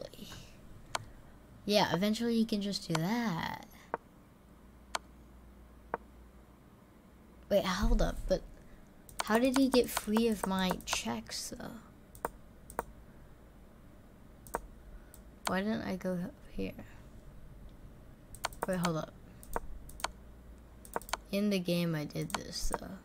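A chess piece clicks softly as a move is played.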